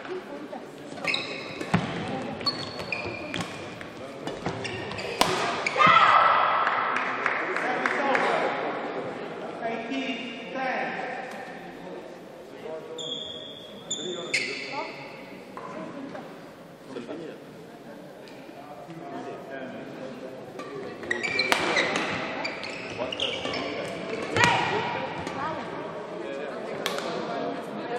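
Rackets sharply strike a shuttlecock back and forth in a large echoing hall.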